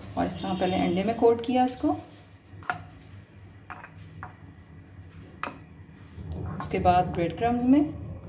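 A metal spoon stirs and clinks in a bowl of beaten egg.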